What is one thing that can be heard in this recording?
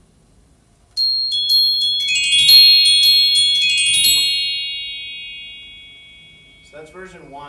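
A keyboard plays a quick run of bright, chiming notes that ring out and slowly fade.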